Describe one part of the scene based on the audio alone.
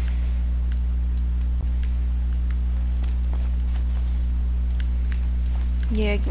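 A campfire crackles close by.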